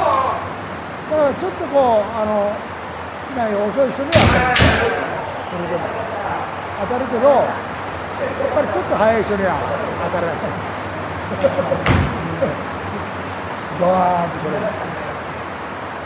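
Fighters shout loudly and sharply in an echoing hall.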